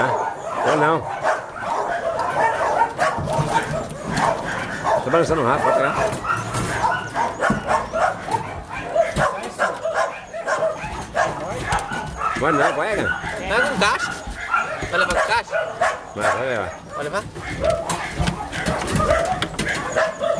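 A plastic pet crate's wire door rattles and clanks as it is handled.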